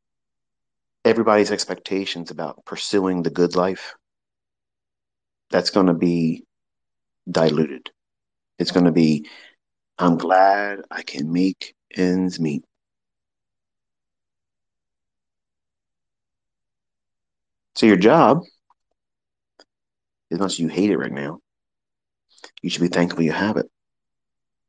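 A man speaks calmly and clearly into a microphone, in short bursts with pauses.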